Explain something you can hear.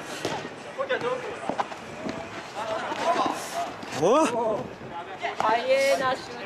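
Young men shout and call out to each other nearby, outdoors.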